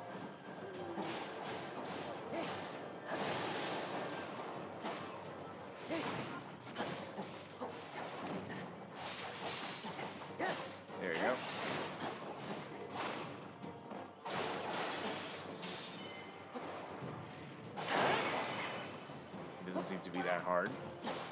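Swords slash and clang in a busy fight.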